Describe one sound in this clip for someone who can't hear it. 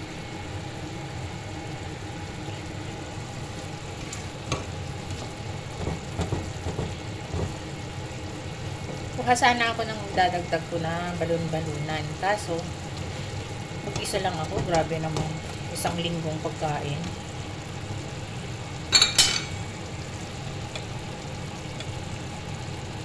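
Food simmers and bubbles gently in a pan.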